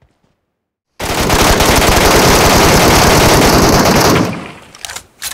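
A rifle fires in a long, rapid, loud burst.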